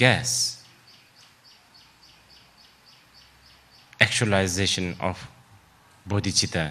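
A man speaks calmly into a microphone, in pauses.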